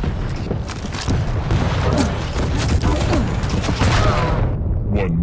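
A shotgun blasts loudly.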